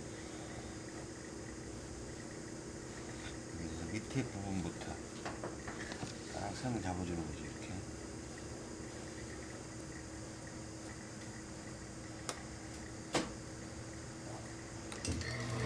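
Cloth rustles softly as hands smooth and pin it.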